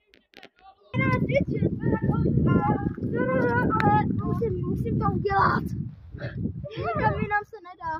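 A young boy talks and calls out loudly close by.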